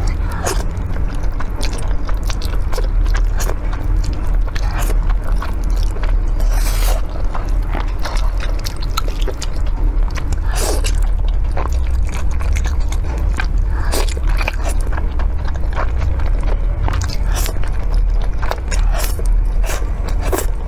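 A young woman slurps noodles loudly and wetly, close to a microphone.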